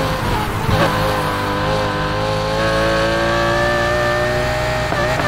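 A racing car engine revs high and steady.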